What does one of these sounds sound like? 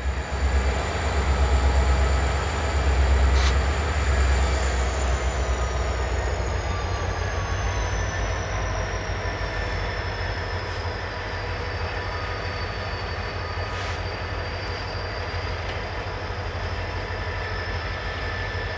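Diesel locomotives rumble loudly as a freight train approaches.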